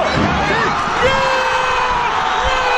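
A man shouts excitedly at the top of his voice.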